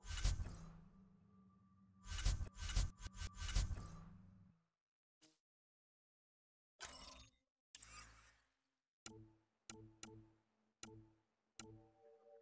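Short electronic blips and whooshes sound as menu pages change.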